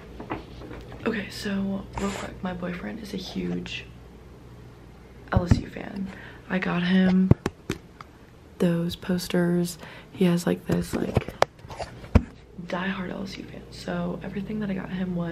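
A young woman talks with animation close to the microphone.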